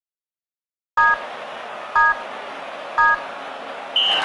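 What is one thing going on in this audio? Three short electronic beeps count down, one each second.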